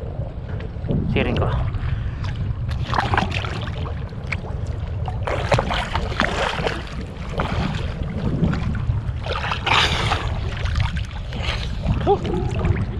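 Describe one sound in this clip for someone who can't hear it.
Water splashes and laps around a wader.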